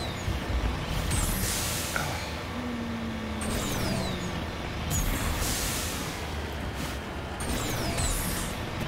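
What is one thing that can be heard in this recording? Jet thrusters whoosh in repeated bursts.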